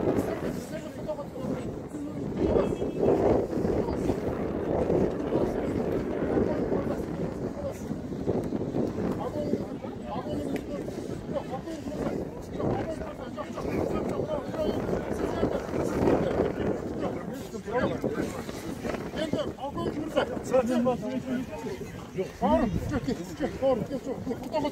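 Several men talk at once nearby, outdoors.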